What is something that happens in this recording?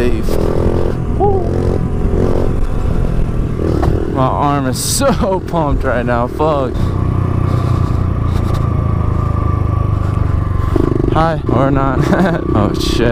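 A small motorbike engine revs and buzzes close by, its pitch rising and falling.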